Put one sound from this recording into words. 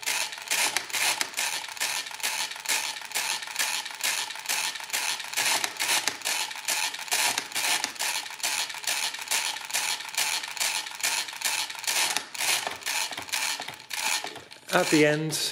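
A mechanical calculator's hand crank turns round and round with rapid, rhythmic clicking and whirring.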